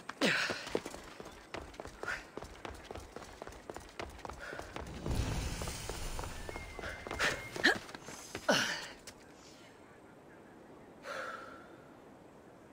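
Quick footsteps patter across clay roof tiles.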